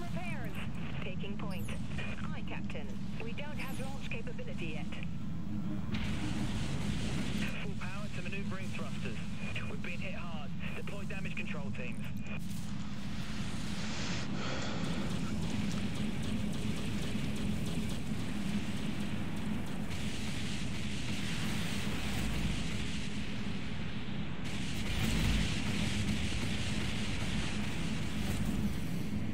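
Energy weapons fire with a steady buzzing hum.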